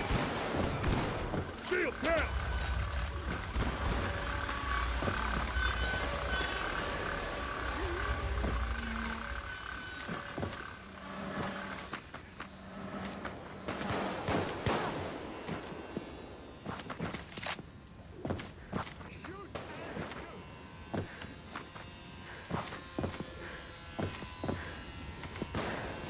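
Gunshots crack sharply again and again.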